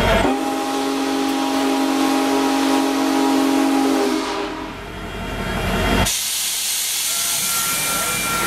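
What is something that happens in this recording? A train's wheels roll and clatter along the rails close by.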